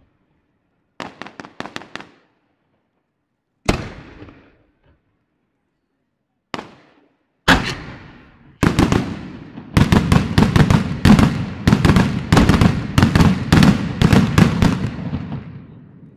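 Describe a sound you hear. Fireworks crackle in rapid bursts.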